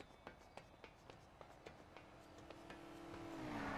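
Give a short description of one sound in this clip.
Hands and feet clank rhythmically on a metal ladder.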